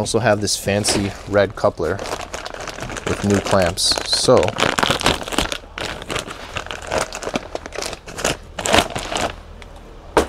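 A plastic bag crinkles and rustles in a man's hands.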